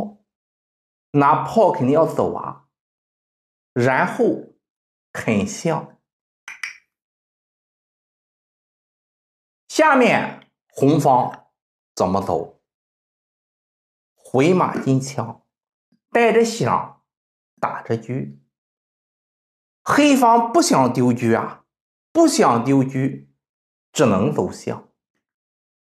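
A middle-aged man explains calmly and clearly, close to a microphone, in short bursts with pauses.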